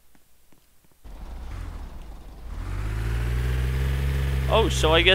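A car engine hums and revs up.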